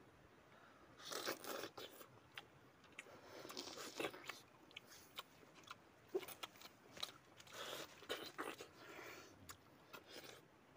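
Young men chew and slurp juicy fruit up close.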